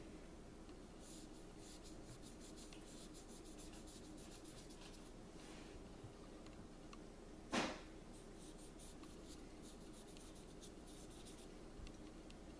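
A cotton swab scrubs against thin metal with soft scratching.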